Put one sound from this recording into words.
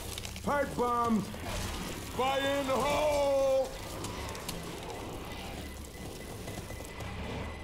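Fire crackles.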